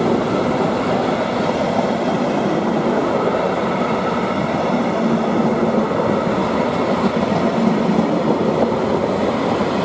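Wheels clatter rhythmically over rail joints.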